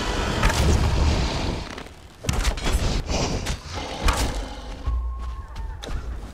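Game sound effects play, with clicks and whooshes.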